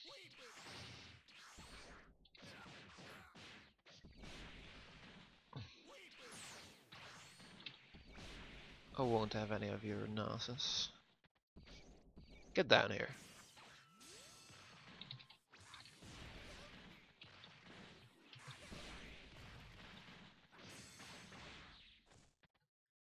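Punches and kicks land with sharp thuds in quick bursts.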